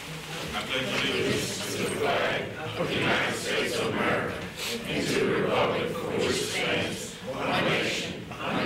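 A crowd of men and women recites together in unison in a large room.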